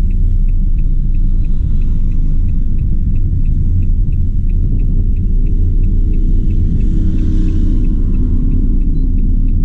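Tyres roll over a road.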